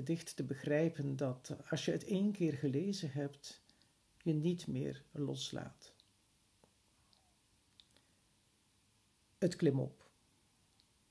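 An elderly man speaks calmly and close to the microphone, with pauses.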